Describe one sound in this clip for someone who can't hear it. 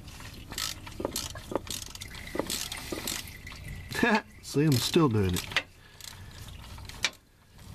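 A metal tool clinks and clicks against a car part.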